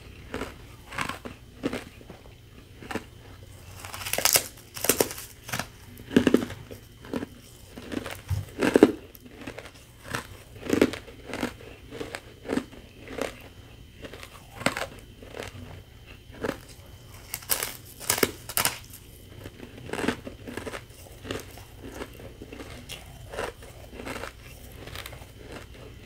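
Fingers crinkle and crush shaved ice close to a microphone.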